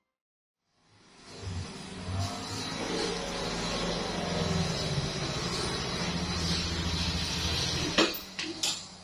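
A motor scooter engine hums as it rides closer and stops.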